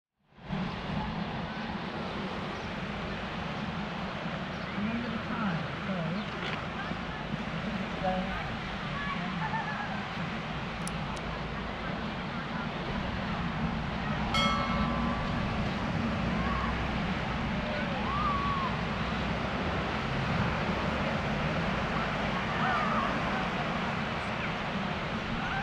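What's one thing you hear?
Adults chat at a distance outdoors.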